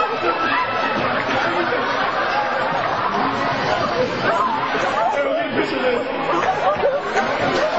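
A group of young men shout and chatter in an echoing hall.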